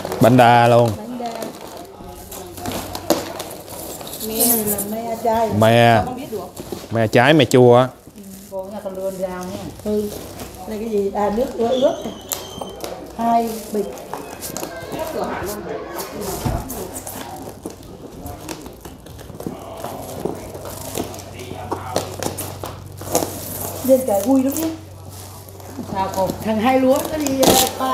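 Cardboard rustles as a box is handled.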